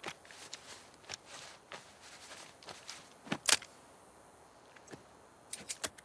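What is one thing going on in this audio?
Metal parts of a revolver click as it is handled.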